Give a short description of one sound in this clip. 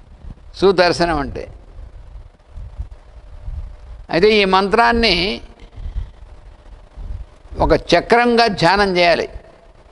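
An elderly man speaks slowly and calmly into a close microphone, in short phrases with pauses.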